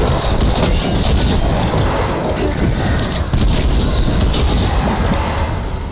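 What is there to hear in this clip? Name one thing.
Explosions boom and crackle with fire.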